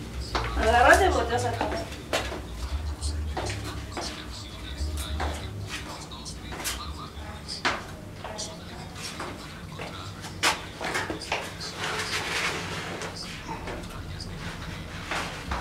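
Footsteps scuff and tap on stone steps in a narrow echoing stairwell.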